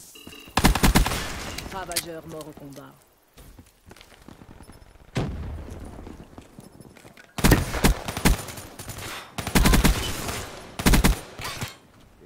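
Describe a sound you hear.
Gunfire from an automatic rifle bursts out in a video game.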